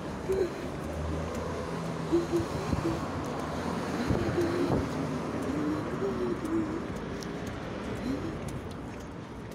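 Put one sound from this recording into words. Footsteps tap on a stone pavement.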